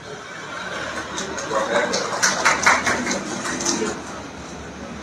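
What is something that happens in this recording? A crowd of men murmurs together in prayer.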